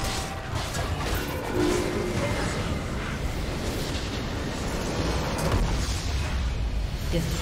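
Video game spells crackle and burst during a fight.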